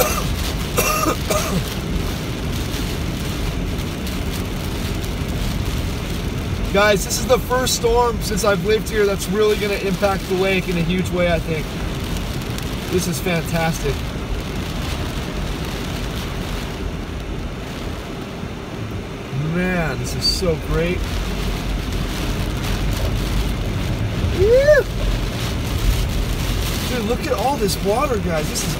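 Tyres hiss steadily on a wet road from inside a moving car.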